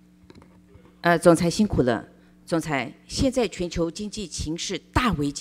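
A middle-aged woman speaks clearly into a microphone.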